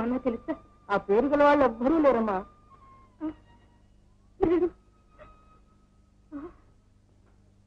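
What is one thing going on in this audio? A middle-aged woman speaks in distress, close by.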